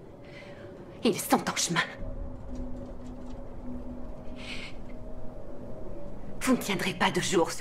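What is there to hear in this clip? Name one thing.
A young woman gasps and cries out in distress nearby.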